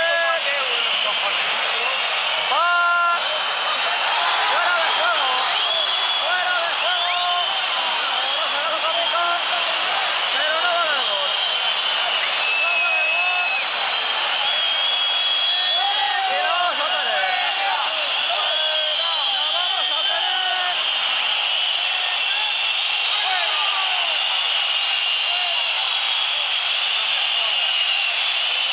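A large stadium crowd roars, whistles and chants throughout.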